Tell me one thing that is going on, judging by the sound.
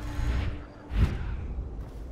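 A heavy thud sounds as someone lands after a fall.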